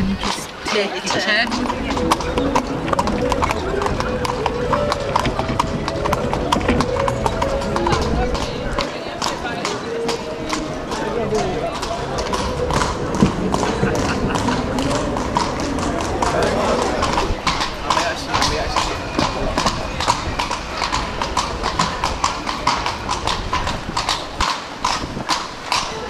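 Horse hooves clop steadily on cobblestones.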